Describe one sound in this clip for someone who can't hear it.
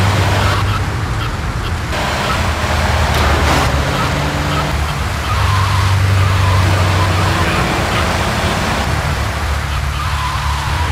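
A car engine hums steadily as the car drives along a street.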